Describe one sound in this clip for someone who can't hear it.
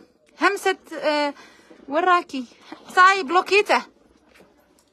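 A young woman speaks with animation close to a phone microphone.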